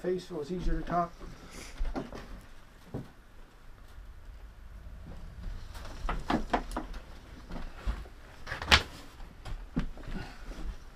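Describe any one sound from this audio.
Wooden knocks and clunks sound from a large wooden drum being handled.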